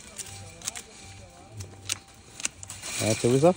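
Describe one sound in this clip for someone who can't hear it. Pruning shears snip through vine branches.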